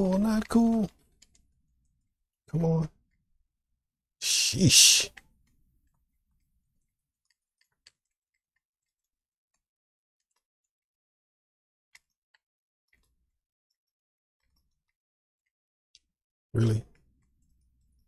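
A man speaks briefly and calmly into a microphone, close by.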